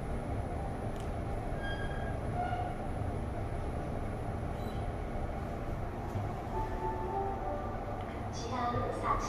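A lift hums low and steadily in its shaft.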